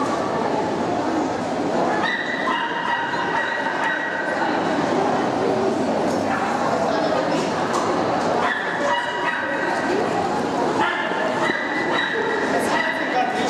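A crowd of people murmurs and chatters throughout a large echoing hall.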